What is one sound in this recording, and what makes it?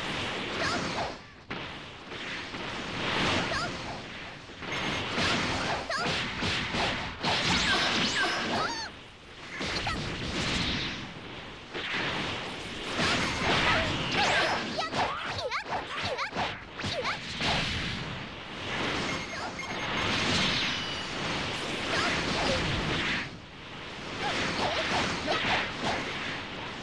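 Energy blasts whoosh and explode in a video game fight.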